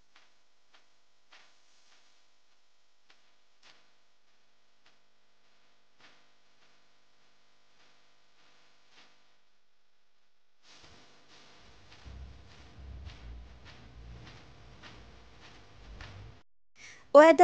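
Hands knead soft dough with quiet squelching and patting.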